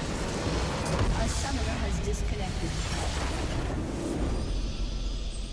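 A loud explosion bursts as a structure is destroyed.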